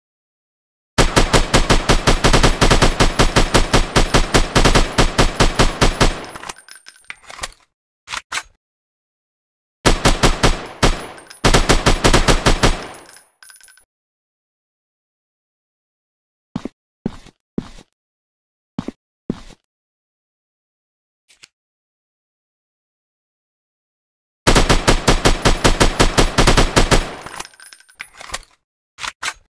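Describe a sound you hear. A rifle fires in rapid bursts of automatic shots.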